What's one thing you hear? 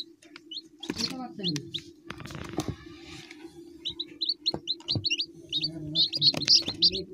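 Baby chicks peep in short, high chirps close by.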